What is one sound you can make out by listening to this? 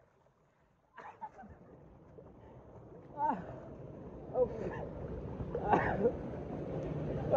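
A man splutters and gasps after coming up from the water.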